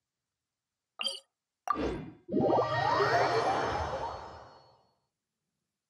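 A game's teleport sound whooshes and chimes, then fades.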